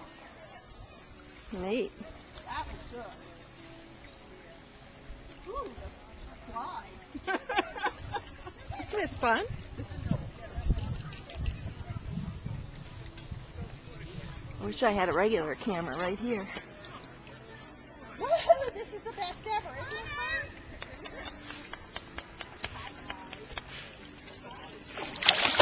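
A dog paddles and splashes through water close by.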